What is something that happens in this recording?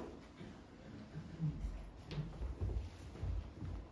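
Footsteps walk across a carpeted floor.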